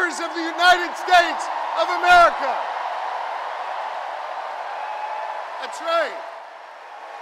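A man speaks forcefully through a microphone over loudspeakers in a large echoing hall.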